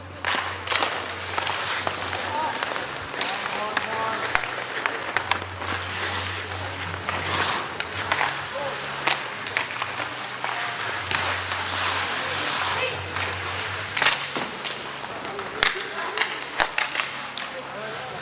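Hockey sticks clack sharply against a puck in a large echoing hall.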